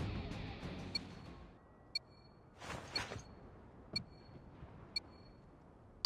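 A countdown timer beeps once a second in short, high electronic tones.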